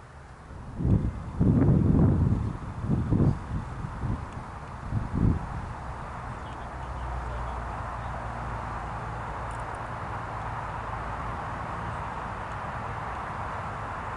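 Wind gusts across an open field outdoors.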